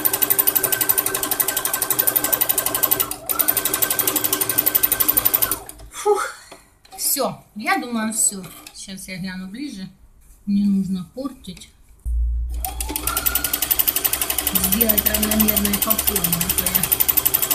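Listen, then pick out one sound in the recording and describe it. A sewing machine stitches in a fast, steady whir.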